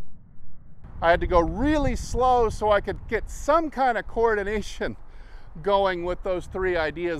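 A man talks calmly to a nearby listener outdoors.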